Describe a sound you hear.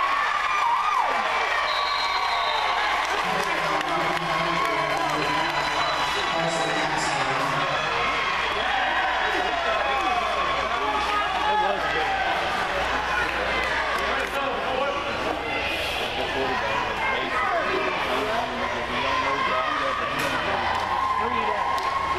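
A crowd of spectators chatters throughout in a large echoing hall.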